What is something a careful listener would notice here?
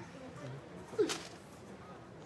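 A bowstring snaps sharply as an arrow is loosed.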